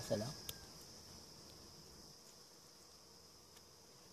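A knife cuts through wax honeycomb.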